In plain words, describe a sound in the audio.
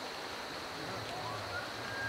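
A bull elk bugles with a high, rising whistle.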